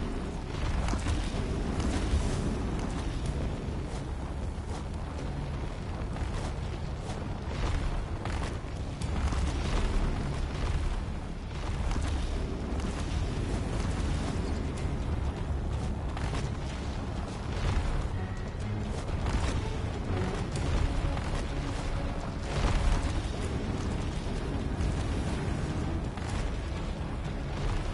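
Footsteps fall on a hard, uneven floor.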